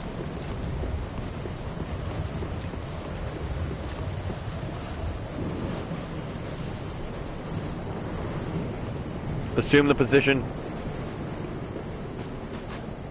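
Armoured footsteps clatter quickly on stone steps.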